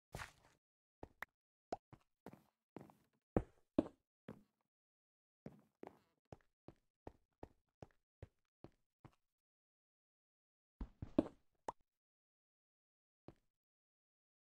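Footsteps tap on hard stone at a steady walking pace.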